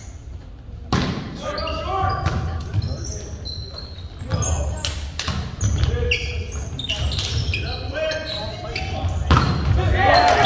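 A volleyball is struck with sharp slaps during play.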